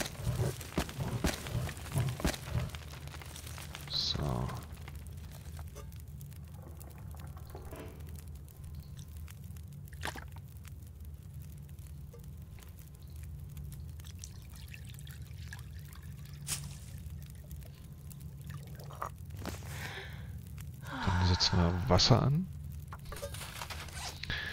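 A campfire crackles and pops.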